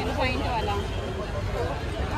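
Men chatter nearby outdoors.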